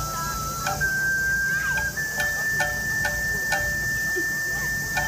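Festival music plays loudly through outdoor loudspeakers.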